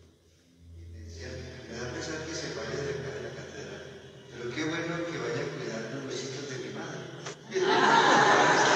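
A man speaks aloud to a small group.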